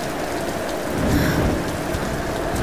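A torch flares up with a sudden whoosh of fire.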